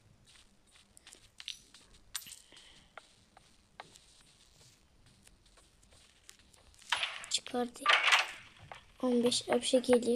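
Coins jingle as they are picked up.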